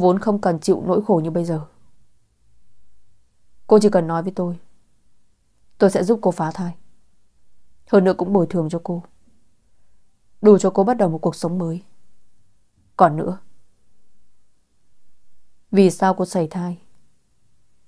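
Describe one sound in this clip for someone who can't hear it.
A young woman speaks calmly into a close microphone, in short phrases with pauses.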